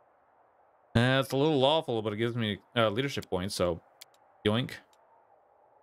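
A man speaks briefly into a microphone with animation.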